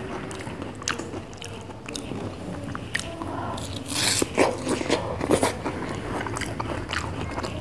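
A person chews and munches food close up.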